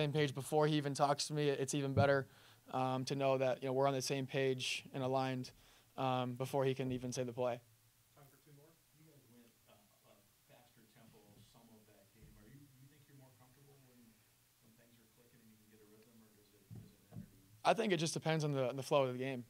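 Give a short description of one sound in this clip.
A young man speaks calmly and with animation into a nearby microphone.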